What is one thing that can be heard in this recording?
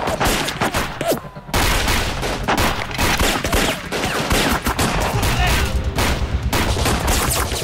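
Rifles fire during a gunfight.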